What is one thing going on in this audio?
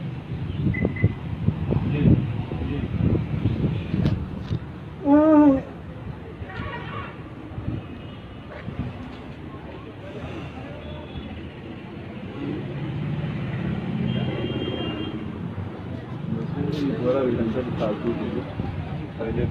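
A middle-aged man talks on a phone nearby.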